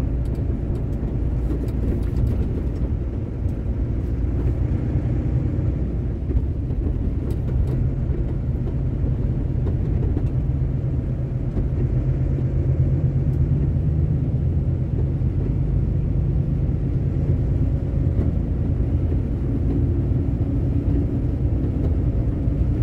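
Tyres hum on a wet road.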